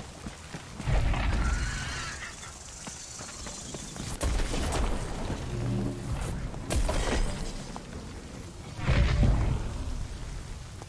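Thunder rumbles low and deep.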